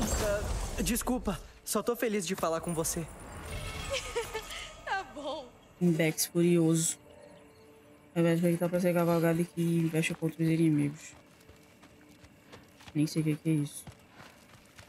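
A young woman talks into a microphone.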